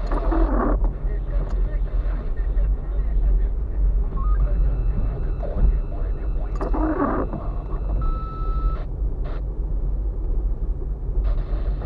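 Tyres thud and rattle over a bumpy, potholed road.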